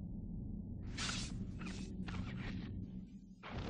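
An eagle screeches overhead.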